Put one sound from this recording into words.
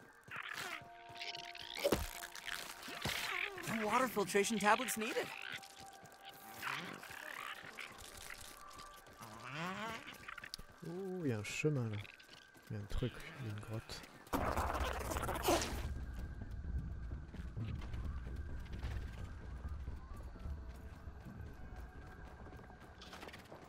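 Footsteps patter on soft ground.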